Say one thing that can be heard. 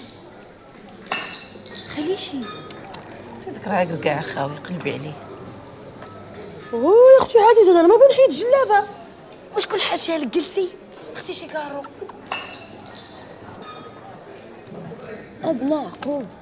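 Another young woman asks a mocking question nearby.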